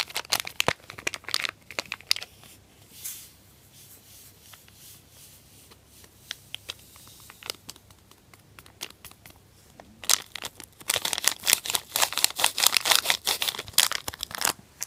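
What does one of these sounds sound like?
A foil packet crinkles and rustles loudly in the hands.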